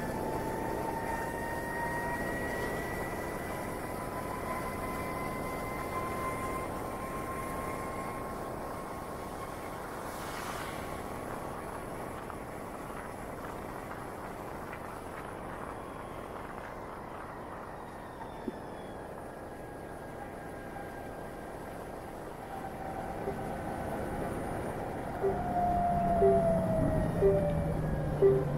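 A motorcycle engine hums steadily while riding along a street.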